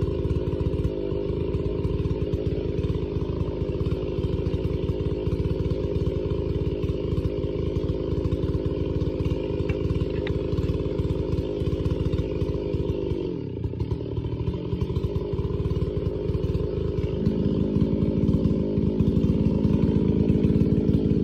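A large chainsaw engine runs at high revs.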